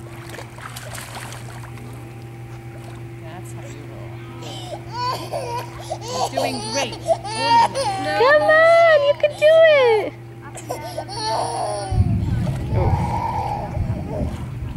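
Water splashes gently as a small child is pulled through it.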